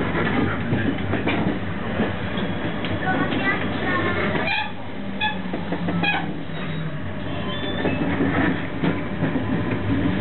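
Train wheels clatter and squeal over rail joints.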